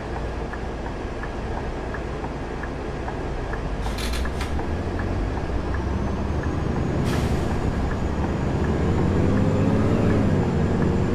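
A bus engine idles with a low rumble, then revs up.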